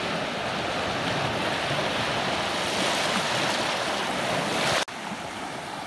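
Waves break and foam loudly close by.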